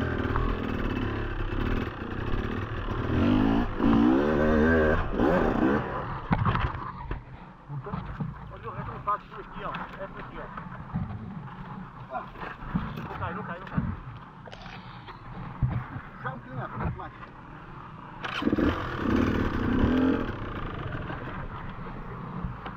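A dirt bike engine idles and putters at low speed.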